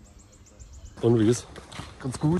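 A young man speaks briefly and close up.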